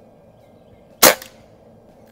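An air rifle fires with a sharp crack.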